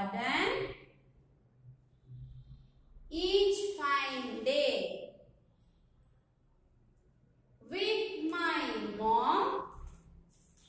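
A young woman speaks clearly and slowly, as if reading aloud, close by.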